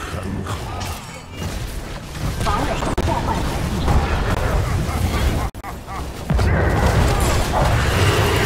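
Spell blasts and explosions crackle and boom in a game battle.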